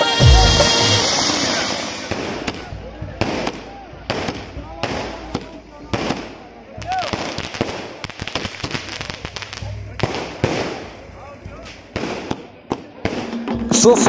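Fireworks crackle and pop in quick bursts.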